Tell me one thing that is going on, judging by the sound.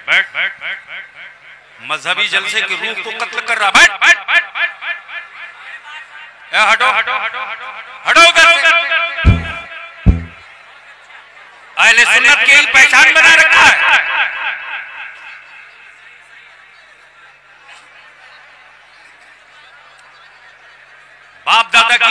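A man chants loudly through a microphone with a ringing echo.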